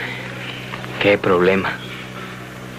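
A man speaks briefly and calmly, nearby.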